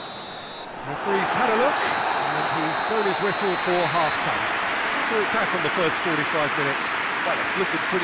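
A stadium crowd cheers and applauds.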